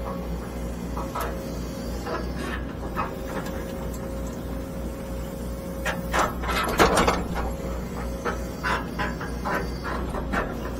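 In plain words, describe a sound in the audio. An excavator engine rumbles steadily from inside the cab.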